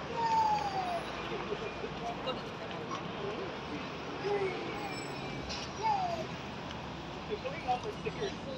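A mix of men's and women's voices chatter at a distance outdoors.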